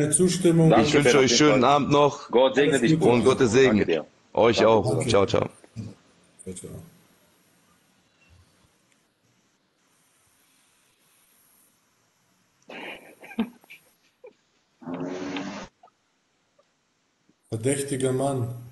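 A man speaks calmly and close to a phone microphone, with pauses.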